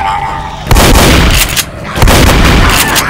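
A shotgun fires loud, booming blasts.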